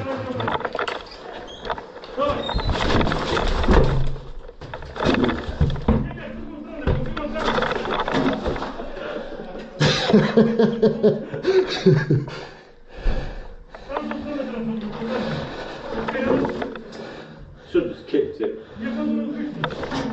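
A door thumps and rattles against its frame.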